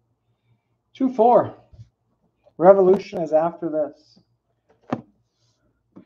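Shrink-wrapped cardboard boxes are shuffled and set down on a table.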